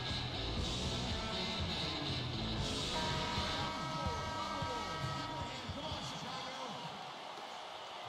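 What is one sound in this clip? Music plays loudly over arena speakers.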